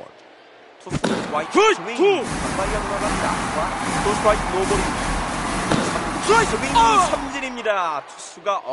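A large crowd cheers and roars in a stadium.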